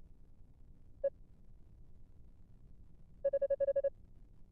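Rapid electronic blips chirp in a quick run.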